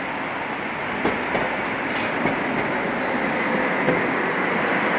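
Tram wheels click over rail joints.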